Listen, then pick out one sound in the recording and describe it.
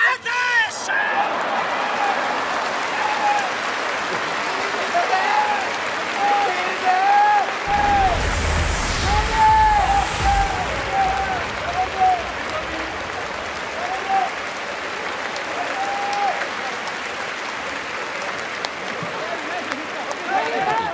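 A large crowd murmurs and cheers in a big echoing stadium.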